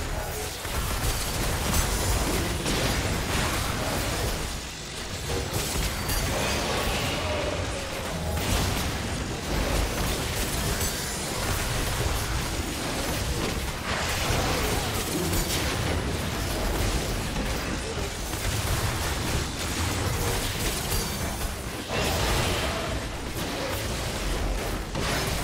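Magic spells and weapon hits crash and whoosh in a busy fantasy battle.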